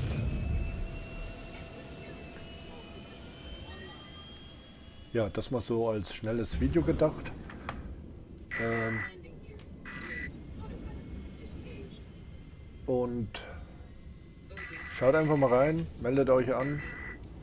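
A spacecraft engine hums low and steadily.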